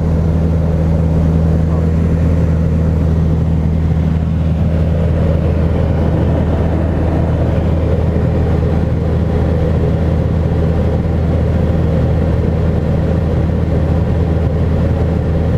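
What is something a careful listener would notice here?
Wind rushes past the plane's cabin.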